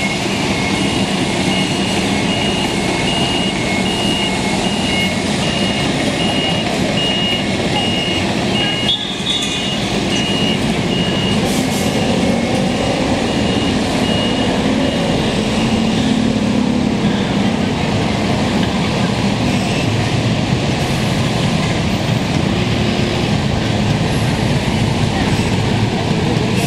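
Dense city traffic hums.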